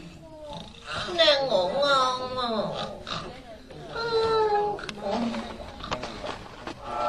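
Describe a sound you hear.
A young boy cries out in alarm.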